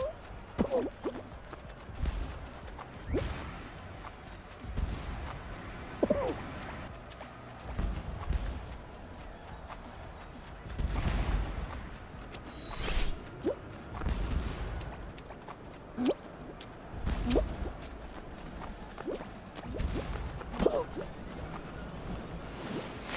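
A cartoon character's feet land with soft thuds again and again.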